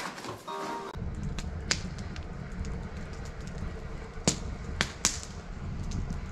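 A wood fire crackles and pops outdoors.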